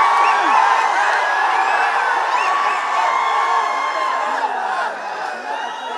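A crowd cheers and shouts loudly in an echoing hall.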